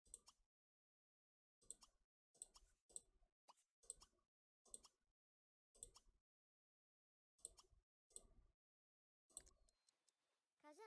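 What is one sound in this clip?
Short interface clicks sound again and again.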